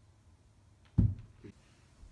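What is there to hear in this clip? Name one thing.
Feet thump onto a carpeted floor.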